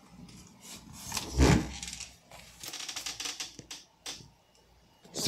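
Paper toy figures rustle and scrape as a hand moves them.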